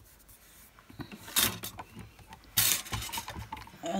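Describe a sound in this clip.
A plastic block taps and slides across a mat.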